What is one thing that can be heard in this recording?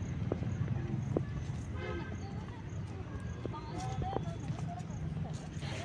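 Footsteps scuff on a paved path.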